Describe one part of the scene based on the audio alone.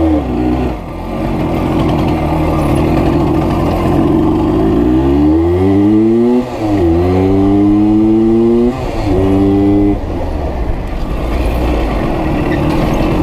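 A motorcycle engine roars and shifts through the gears as it speeds up.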